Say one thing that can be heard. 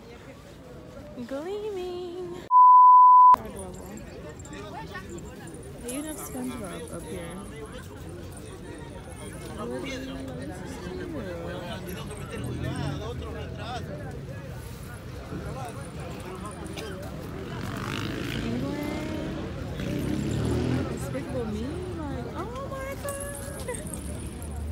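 A young woman talks close to the microphone outdoors.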